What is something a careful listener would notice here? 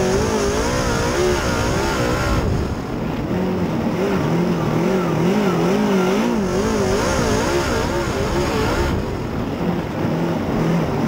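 A race car engine roars loudly up close, its pitch rising and falling as it revs.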